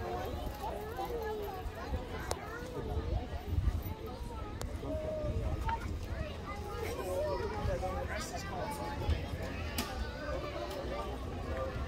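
A crowd of adults and children chatter outdoors.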